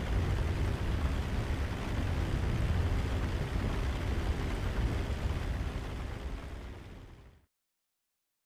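A small plane's propeller engine drones steadily, then fades away.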